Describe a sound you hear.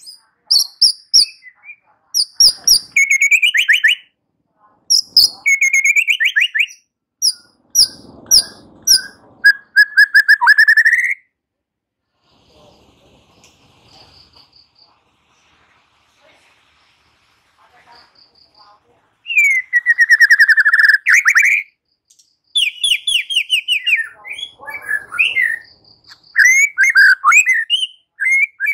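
A songbird sings loud, varied whistles and chirps close by, in bursts with short pauses.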